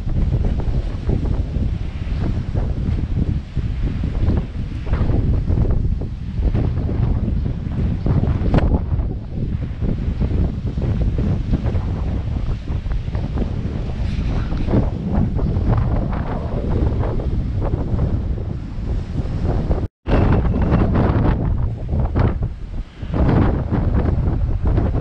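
Waves crash and wash over rocks nearby.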